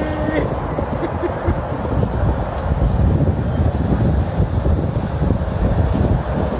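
Traffic engines rumble nearby.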